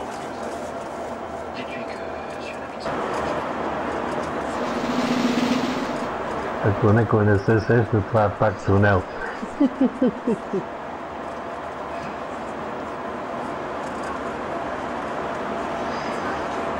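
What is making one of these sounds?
Traffic rumbles steadily through an echoing tunnel.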